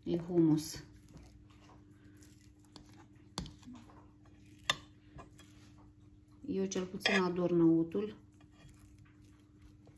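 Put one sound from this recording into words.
A knife softly scrapes as it spreads a paste across bread.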